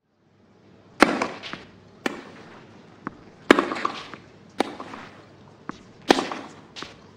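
Rackets strike a tennis ball back and forth with sharp pops.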